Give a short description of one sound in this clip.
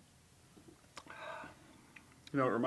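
A man sniffs from a glass.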